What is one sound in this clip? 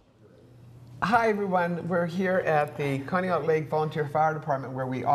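An elderly woman speaks with animation into a close microphone.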